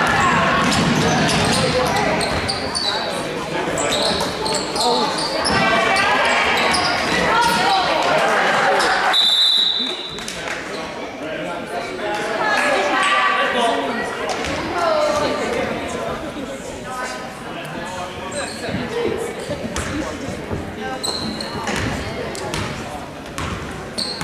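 Spectators talk and cheer in a large echoing gym.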